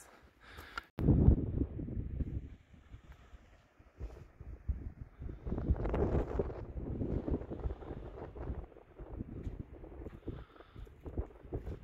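Wind gusts outdoors and buffets the microphone.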